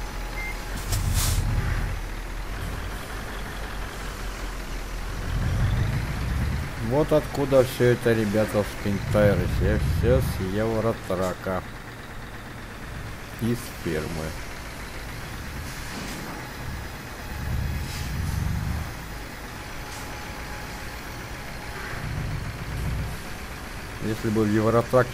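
A truck engine rumbles low and steadily as the truck drives slowly.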